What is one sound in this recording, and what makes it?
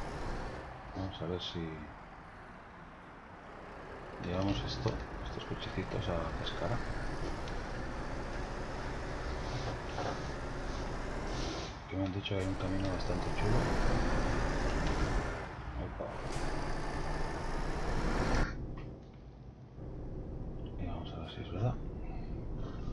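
A truck engine rumbles steadily as a heavy truck drives along.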